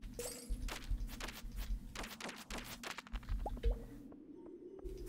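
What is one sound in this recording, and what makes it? A pickaxe chips at rock with quick, sharp knocks.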